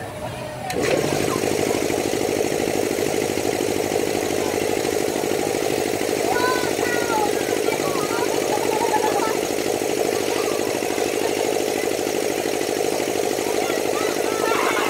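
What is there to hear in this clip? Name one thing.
An amusement ride's motor hums steadily as the ride spins.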